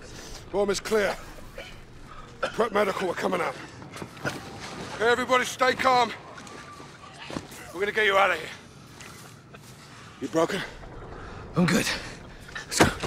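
A man speaks urgently and firmly, close by.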